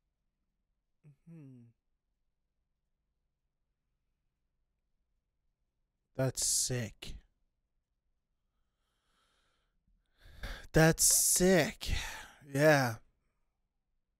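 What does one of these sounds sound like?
A man speaks calmly and closely into a microphone, in short phrases.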